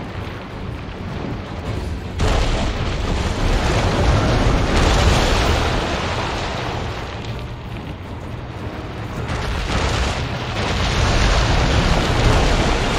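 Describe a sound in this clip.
Lava rumbles and roars steadily.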